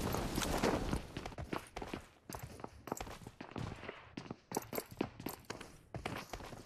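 Footsteps patter quickly on a hard surface.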